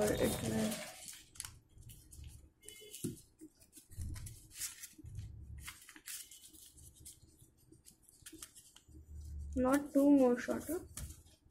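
Paper rustles and crinkles as it is folded.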